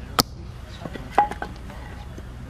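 Wood clatters as a split piece is set down on a block.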